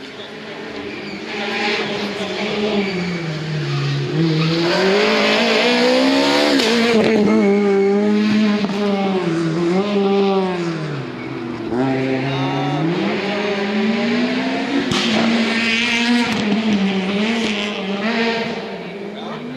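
A rally car engine roars closer, revving hard with gear changes as the car speeds past and climbs away.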